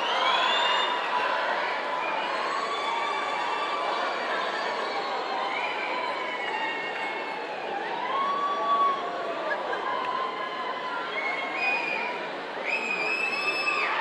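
A large crowd of young men and women chatters loudly in a big echoing hall.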